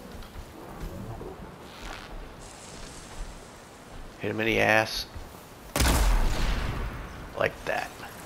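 Tall grass rustles as someone creeps through it.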